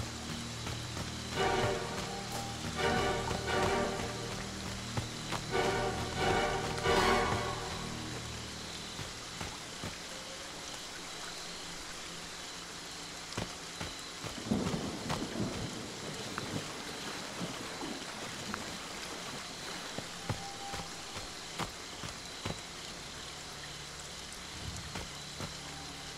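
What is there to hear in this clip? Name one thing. Footsteps crunch over grass and dirt.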